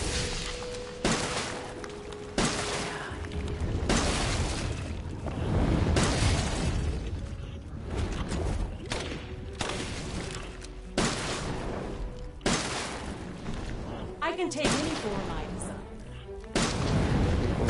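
A shotgun fires loud blasts, one after another.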